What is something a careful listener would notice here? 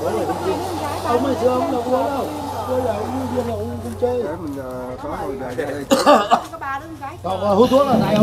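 Several men chat casually nearby.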